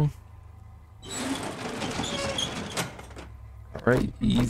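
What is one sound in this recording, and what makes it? A metal roll-up door rattles as it rolls open.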